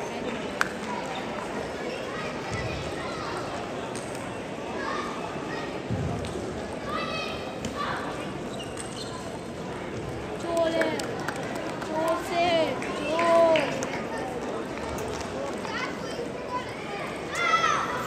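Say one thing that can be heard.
Table tennis balls click sharply off paddles and tables in a large echoing hall.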